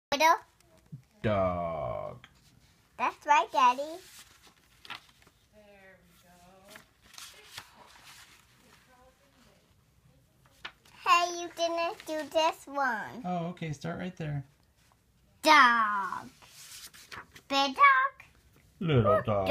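A young girl speaks close by, reading out with animation.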